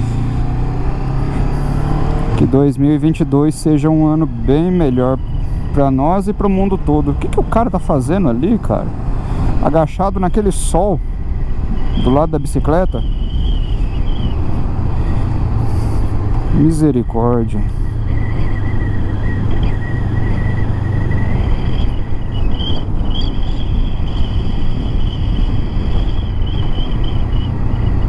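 Wind rushes loudly past a moving motorcycle rider.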